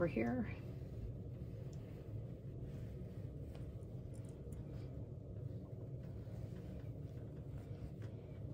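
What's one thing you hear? Fabric rustles softly under hands.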